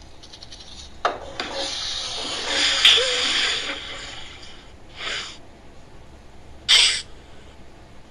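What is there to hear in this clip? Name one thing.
Cartoon game voices and sound effects chatter from small speakers.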